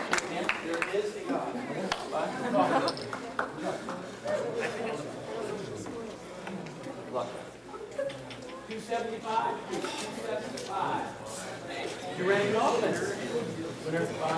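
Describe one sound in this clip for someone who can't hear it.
Men and women chat nearby in an echoing hall.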